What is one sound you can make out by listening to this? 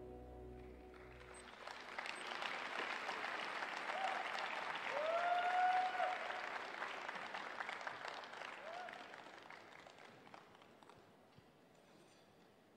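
An audience applauds in a large echoing arena.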